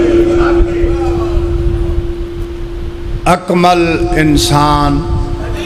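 A middle-aged man speaks forcefully into a microphone, heard through loudspeakers in an echoing space.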